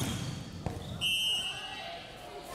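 A whistle blows sharply in a large echoing hall.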